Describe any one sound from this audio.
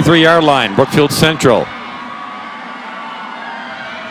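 A crowd cheers and shouts across a stadium.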